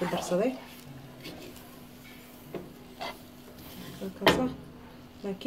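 A spatula scrapes through thick batter in a bowl.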